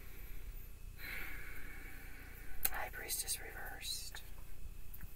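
Playing cards rustle and flick as a woman shuffles them.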